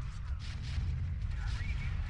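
A crackling electric blast bursts.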